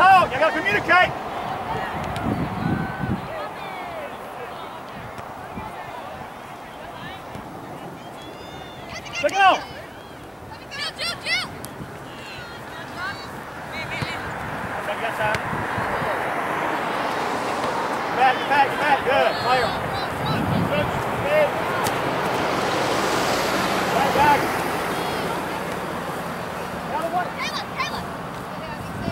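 Spectators call out and cheer from the sidelines.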